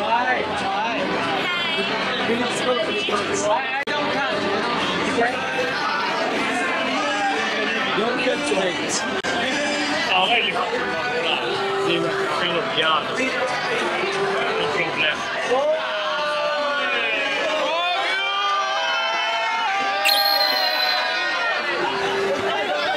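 A group of young men and women talk and laugh loudly.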